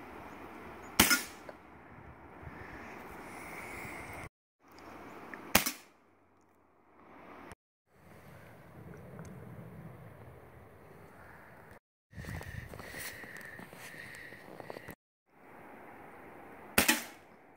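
A pistol fires sharp shots outdoors, each with a short echo.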